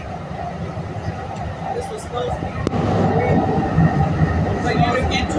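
A train car rumbles steadily as it rolls along.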